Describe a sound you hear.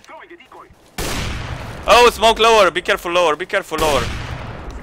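A rifle fires loud, sharp shots.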